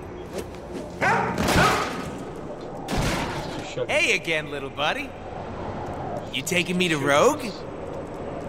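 A young man speaks through a headset microphone.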